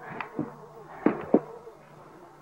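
Plastic toys clack together.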